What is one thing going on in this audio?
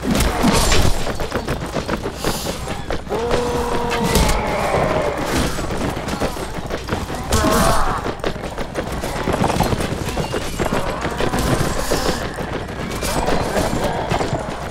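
Swords clash and thud against wooden shields.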